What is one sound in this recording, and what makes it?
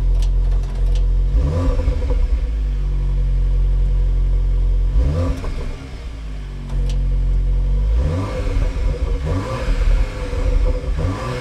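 A sporty car engine idles with a deep exhaust rumble and revs up sharply several times.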